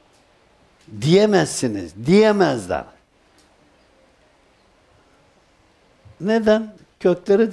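An elderly man speaks slowly and with feeling into a close microphone.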